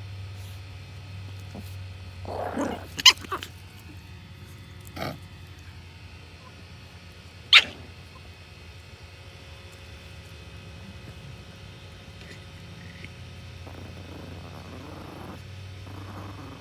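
Small dogs scurry and rustle through dry mulch.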